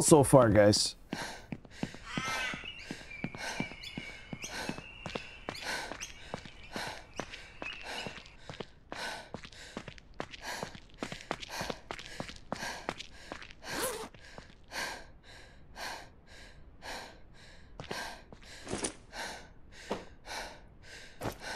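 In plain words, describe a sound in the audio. Footsteps run quickly and steadily on pavement.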